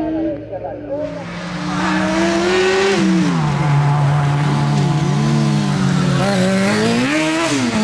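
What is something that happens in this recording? A small racing car engine revs and whines as the car speeds closer.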